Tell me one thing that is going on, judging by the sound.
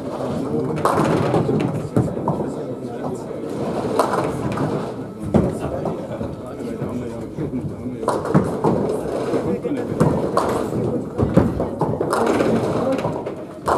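Pins clatter loudly as a ball strikes them.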